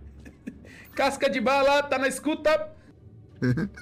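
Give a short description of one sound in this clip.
A man laughs over an online call.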